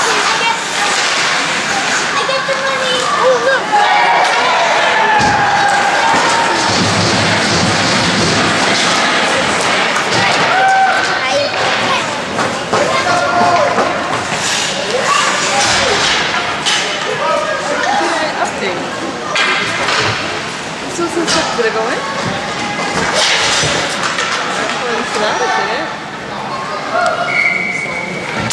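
Young men shout and call out in a large echoing rink.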